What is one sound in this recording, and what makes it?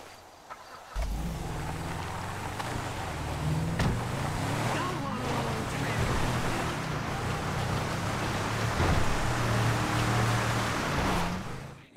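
A car engine revs as the car drives off on a dirt road.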